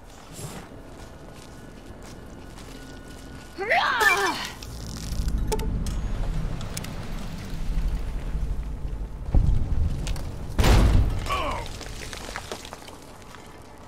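A flaming blade roars and crackles.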